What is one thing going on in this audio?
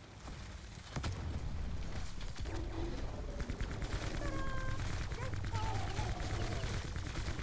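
A large creature roars and growls loudly.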